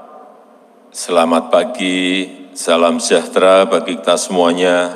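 A man speaks calmly into a microphone, heard over a loudspeaker.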